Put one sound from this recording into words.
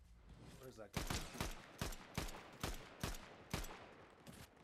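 A rifle fires a series of sharp shots.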